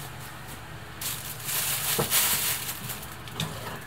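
Plastic wrap crinkles as it is peeled away.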